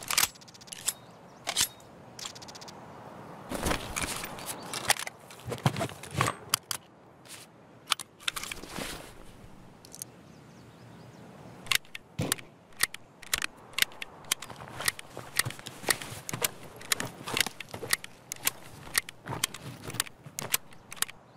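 Items rustle and clatter as they are moved in a game inventory.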